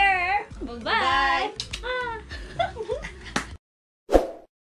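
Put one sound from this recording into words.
Young women squeal and laugh excitedly close by.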